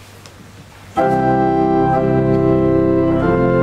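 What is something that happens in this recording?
A pipe organ plays a sustained chord.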